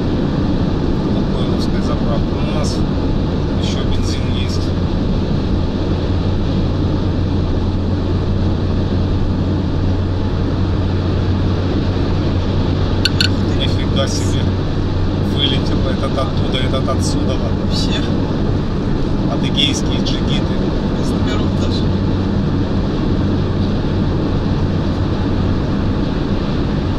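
A car engine hums steadily with a low, constant drone.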